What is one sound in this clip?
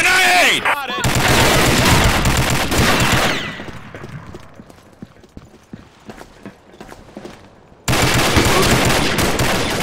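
A rifle fires loud rapid bursts, close by.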